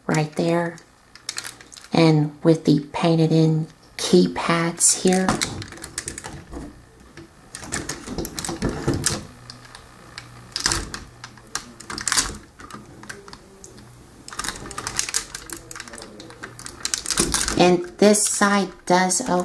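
Plastic toy parts click and rattle close by as they are handled.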